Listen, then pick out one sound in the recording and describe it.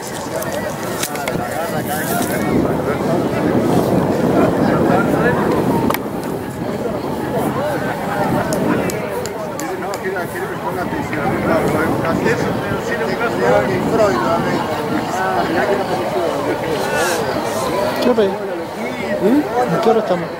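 Several men shout and call to each other outdoors in the distance.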